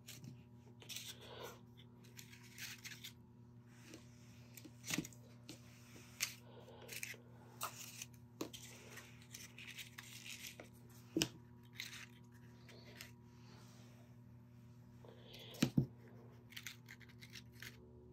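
Paper flowers rustle softly as a hand moves them.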